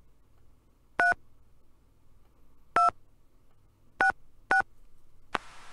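An electronic handset beeps sharply as its keys are pressed.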